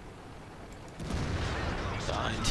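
A shell explodes with a loud blast.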